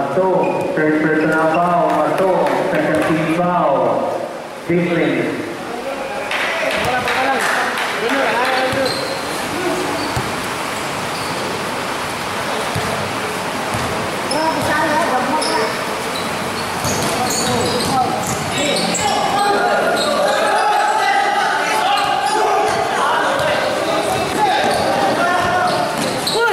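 A crowd of spectators chatters and shouts in an echoing gym.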